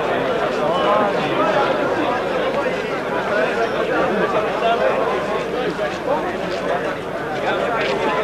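A crowd of men chatters close by outdoors.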